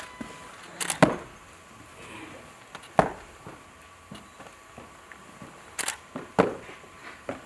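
Boots stamp on the floor.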